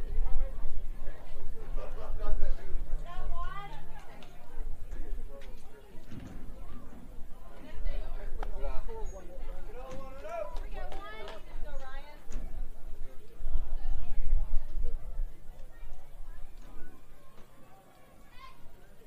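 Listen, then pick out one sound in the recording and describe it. Men and boys call out and chatter across an open field.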